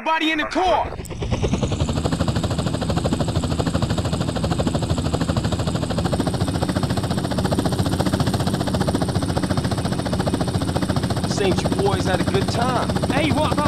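A helicopter's rotor chops and its engine drones steadily.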